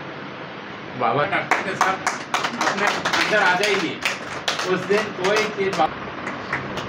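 An elderly man speaks cheerfully nearby.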